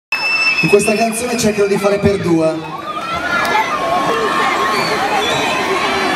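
A crowd chatters and cheers.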